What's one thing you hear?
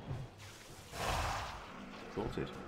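A magic spell whooshes and crackles.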